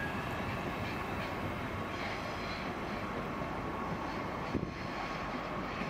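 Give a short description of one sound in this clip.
A train rolls away along the tracks with a steady rumble.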